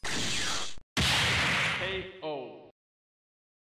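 A deep booming blast rings out and fades.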